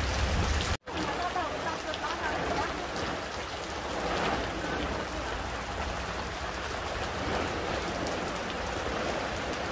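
A plastic tarp rustles and crackles as it is dragged across wet ground.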